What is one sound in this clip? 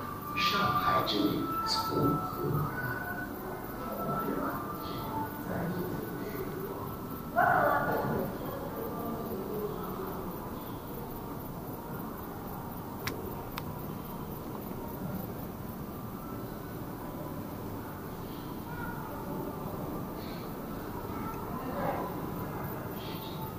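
People talk faintly in the distance in a large, echoing hall.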